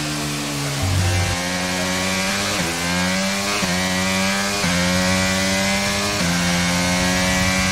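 A racing car engine climbs in pitch through quick upshifts.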